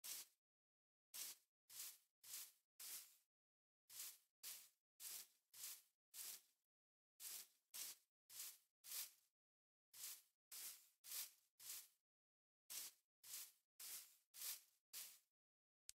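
Footsteps tread on stone in quick, even steps.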